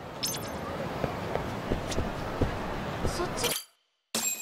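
Footsteps tap on a hard floor.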